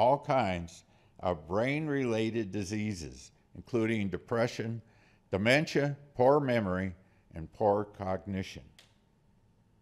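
A middle-aged man speaks calmly into a microphone in a hall.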